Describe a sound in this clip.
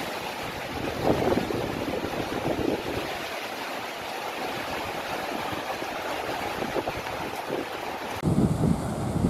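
Strong wind roars and gusts through palm trees.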